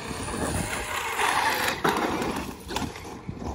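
An electric radio-controlled monster truck speeds across concrete.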